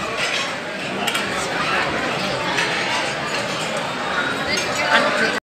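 Many people chatter in a busy room with a loud echo.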